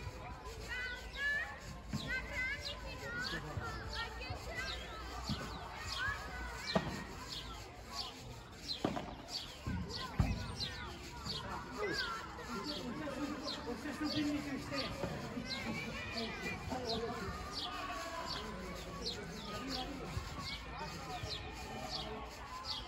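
Padel rackets strike a ball with sharp pops.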